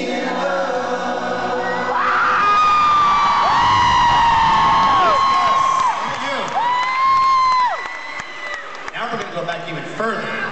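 A man sings loudly through a loudspeaker system, holding long notes.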